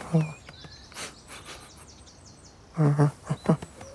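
A cat's paws patter quickly across grass.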